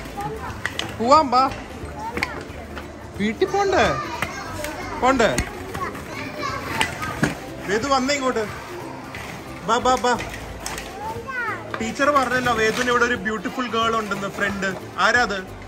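A young child talks and squeals excitedly close by.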